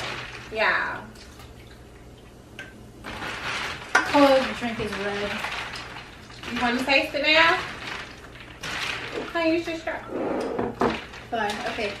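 Ice cubes clink in a glass pitcher as a straw stirs them.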